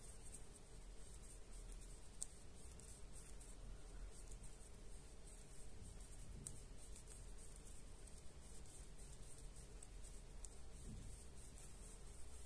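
A crochet hook softly rustles and scratches through yarn.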